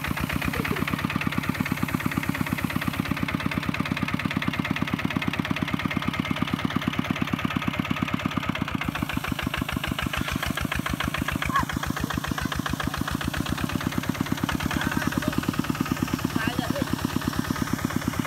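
A small diesel engine chugs loudly and steadily close by.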